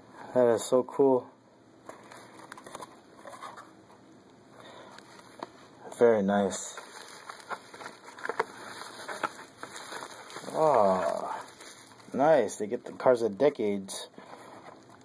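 A plastic toy package rustles and crinkles as a hand handles it.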